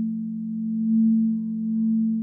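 A mallet strikes a singing bowl with a soft tap.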